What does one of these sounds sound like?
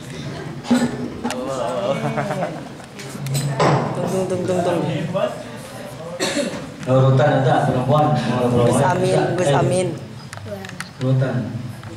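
A man speaks through a microphone in a reverberant hall, calmly and at length.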